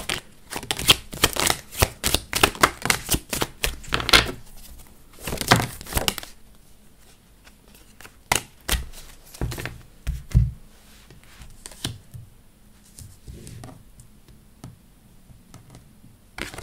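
Cards are laid down and slid across a wooden table with soft taps.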